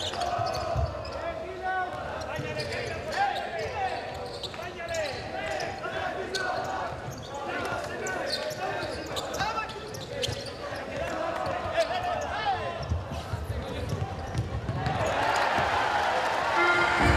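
A crowd murmurs in a large echoing hall and swells into a roar.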